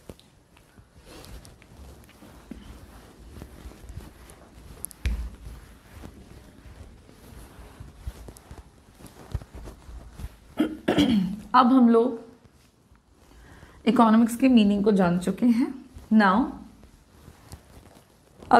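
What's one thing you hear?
A cloth rubs across a whiteboard.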